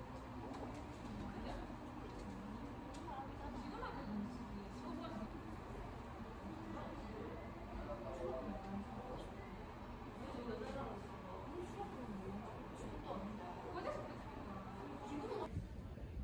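A young woman talks quietly and calmly, close by.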